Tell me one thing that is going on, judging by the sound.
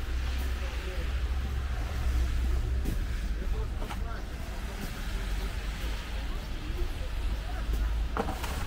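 Traffic rumbles steadily in the distance.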